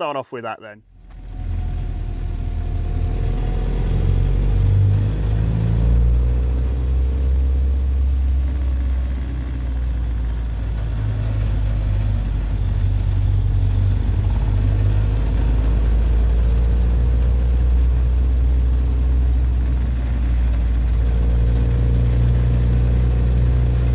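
An old engine rumbles low and steady as a vehicle drives along.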